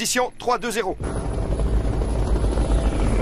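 A helicopter's rotor thuds loudly overhead.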